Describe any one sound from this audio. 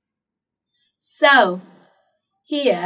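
A young woman speaks clearly and cheerfully into a close microphone.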